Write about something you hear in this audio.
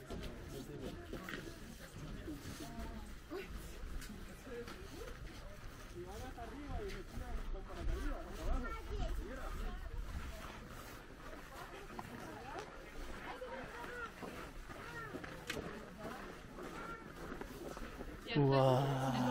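Several men and women chat casually nearby, outdoors.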